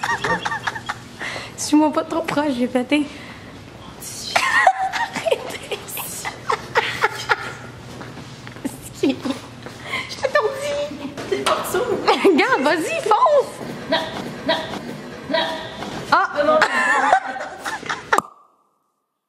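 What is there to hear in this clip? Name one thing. A young woman talks and laughs close by, with animation.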